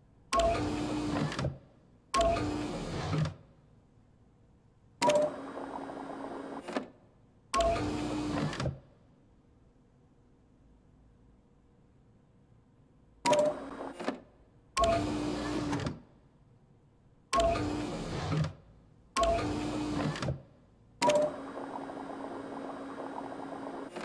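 Liquid gurgles and pours between tubes in bursts, each starting with a short beep.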